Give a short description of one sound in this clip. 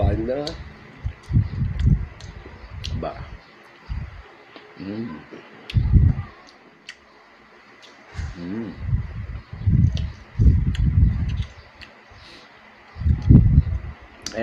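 A man chews and smacks his lips loudly.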